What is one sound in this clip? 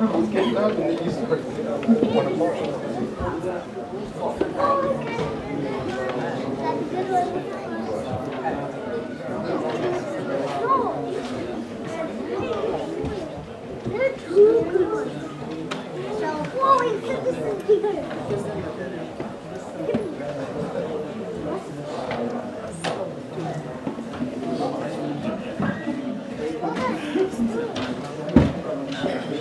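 Several men murmur and talk nearby.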